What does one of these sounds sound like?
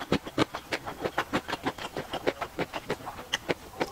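Chopsticks clink against a glass bowl.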